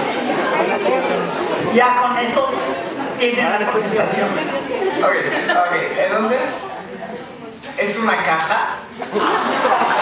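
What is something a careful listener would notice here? An older woman speaks through a microphone in an echoing hall.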